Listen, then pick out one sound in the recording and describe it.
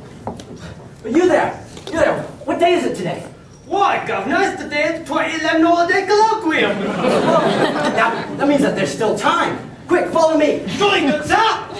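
A young man speaks loudly on a stage in a room that echoes.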